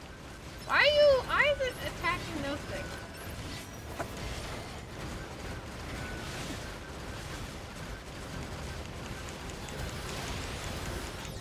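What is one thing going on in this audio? Gunfire and explosions crackle throughout a video game battle.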